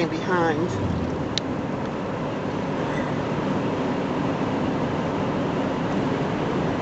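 A car drives steadily along a road, with a low rumble of tyres and engine from inside.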